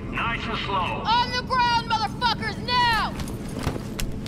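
A man speaks sternly, close by.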